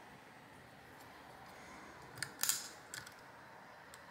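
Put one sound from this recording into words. A metal tool scrapes and pries at plastic.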